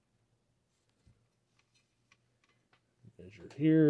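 Meter probes tap lightly against metal contacts.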